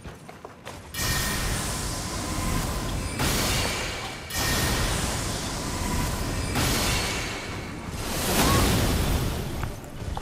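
A blade swooshes through the air in heavy swings.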